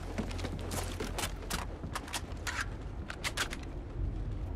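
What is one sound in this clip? A rifle clicks and clacks as it is handled and readied.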